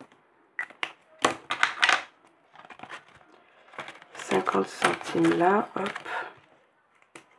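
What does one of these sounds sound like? Plastic binder sleeves rustle and crinkle as hands handle them.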